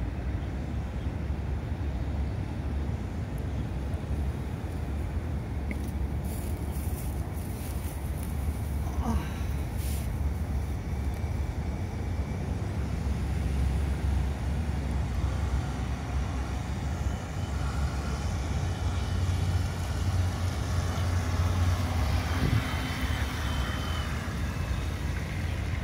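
A small model motorboat buzzes steadily as it speeds across water, growing louder as it comes closer.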